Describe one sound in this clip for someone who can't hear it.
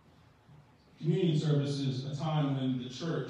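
A second man speaks through a microphone.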